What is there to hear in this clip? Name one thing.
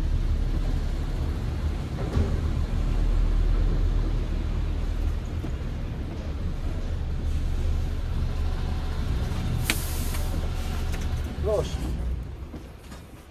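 A truck engine rumbles low and steady, then goes quiet.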